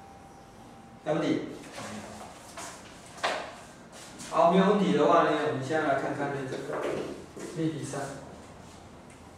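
A man speaks calmly and clearly nearby, in a slightly echoing room.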